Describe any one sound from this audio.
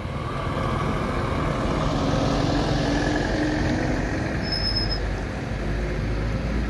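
Tyres roll slowly over a rough, broken road.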